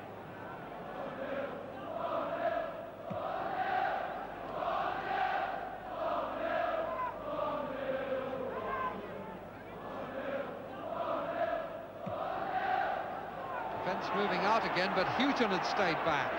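A stadium crowd sings a chant in unison.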